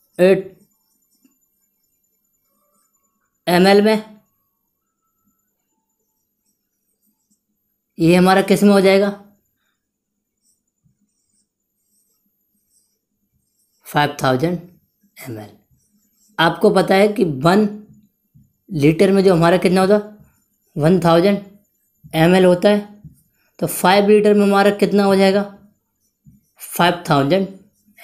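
A young man speaks calmly and clearly, close by, in short bursts with pauses.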